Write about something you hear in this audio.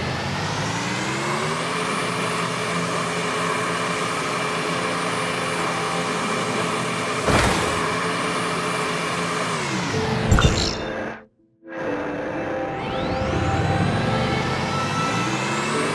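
A motorbike engine hums steadily and shifts in pitch as it speeds up and slows down.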